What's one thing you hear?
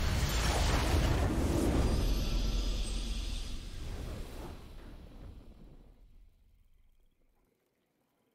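A video game victory fanfare plays and fades out.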